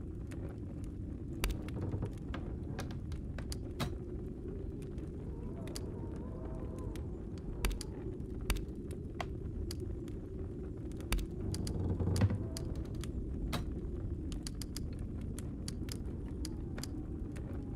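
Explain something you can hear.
Short clicks sound as menu buttons are pressed.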